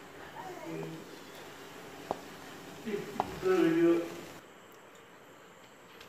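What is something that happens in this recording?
Broth bubbles and simmers in a pot.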